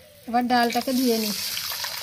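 Water pours into a bowl.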